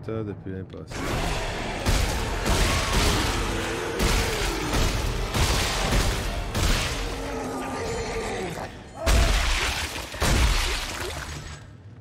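A weapon fires in rapid bursts with loud blasts.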